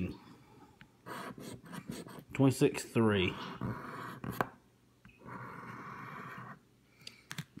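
A fingernail scratches and scrapes across a card.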